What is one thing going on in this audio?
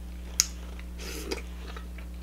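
A woman sucks food off her fingers with a wet slurp.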